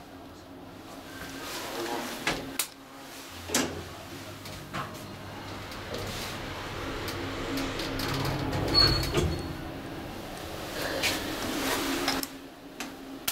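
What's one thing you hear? An elevator motor hums steadily as the car travels.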